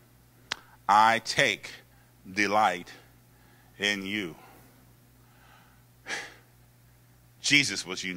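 A man preaches with animation into a microphone, heard through loudspeakers in a large hall.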